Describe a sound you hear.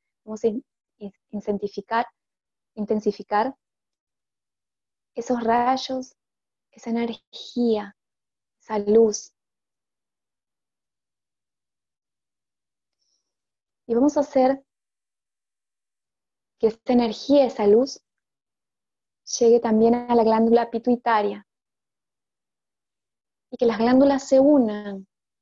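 A woman speaks calmly and clearly into a close microphone, with pauses between phrases.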